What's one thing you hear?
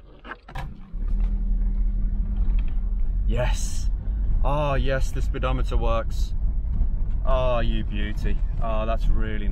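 A car engine starts and idles with a steady low rumble.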